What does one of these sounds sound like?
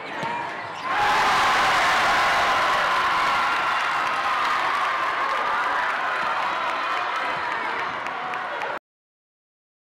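A large crowd cheers loudly in an echoing gym.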